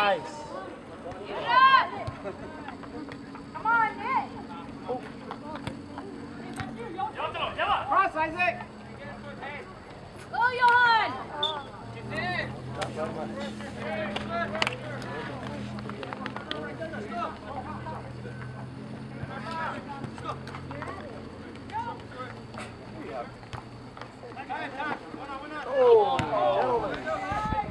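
Young men shout to each other from across an open field outdoors.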